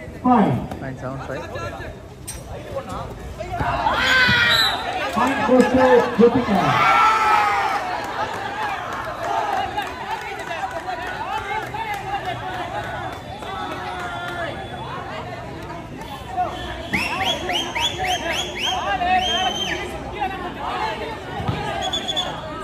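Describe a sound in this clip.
Young men talk and call out to one another on the court.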